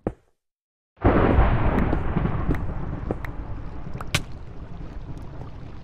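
A pickaxe chips at stone with quick taps.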